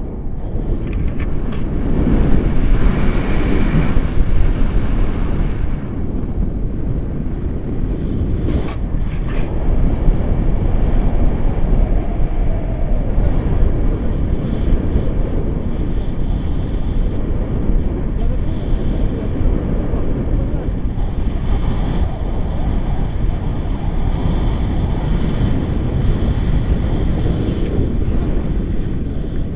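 Wind rushes and buffets loudly against a microphone outdoors.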